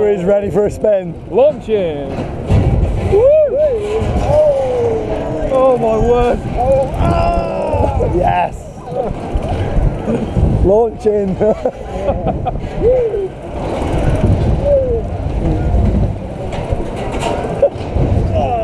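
Young riders scream and shout excitedly close by.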